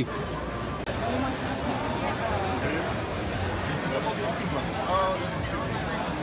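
A crowd of people chatters all around in a large, echoing hall.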